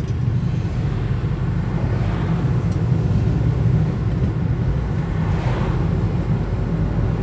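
A passing car whooshes by close on the other side.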